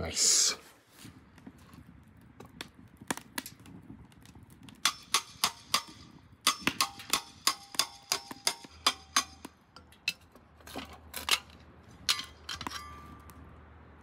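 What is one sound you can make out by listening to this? A wood fire crackles and pops.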